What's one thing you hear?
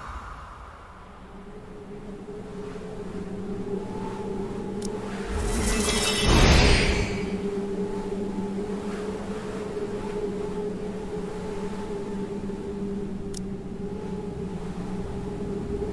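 Soft sustained game music plays throughout.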